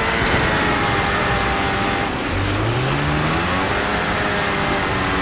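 A snowmobile engine roars steadily, its pitch rising as it speeds up.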